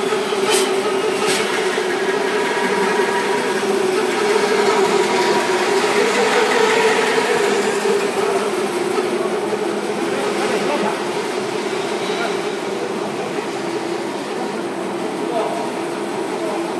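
An industrial machine hums with a steady drone.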